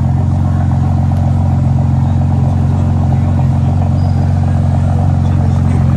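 A crowd murmurs.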